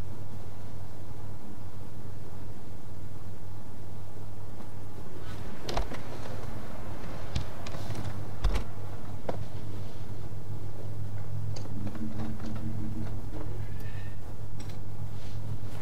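A man talks calmly into a microphone, close by.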